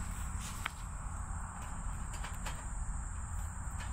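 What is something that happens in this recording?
A metal grill grate clatters onto a fire pit.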